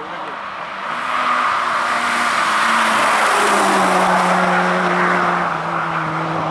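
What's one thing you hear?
Tyres hiss on the asphalt as a car speeds past.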